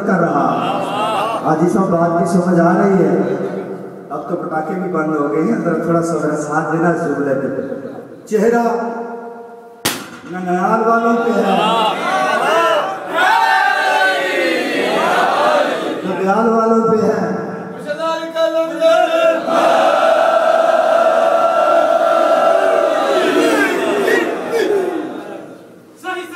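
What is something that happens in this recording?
A man sings with feeling through a loudspeaker, in a room that echoes.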